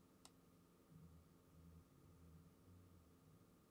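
A man speaks quietly through a microphone.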